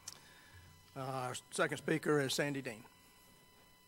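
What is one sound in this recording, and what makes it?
An elderly man speaks briefly into a microphone.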